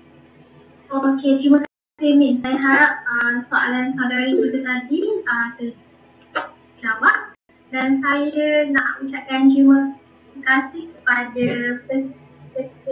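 A young woman speaks casually through an online call.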